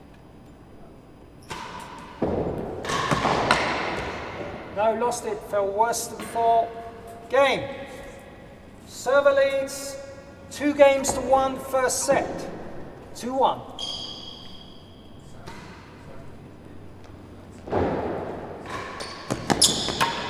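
A racket strikes a ball with a sharp crack in an echoing hall.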